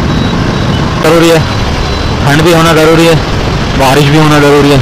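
Vehicle horns honk loudly several times nearby.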